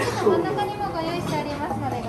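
A metal spoon scrapes inside a glass jar of jam.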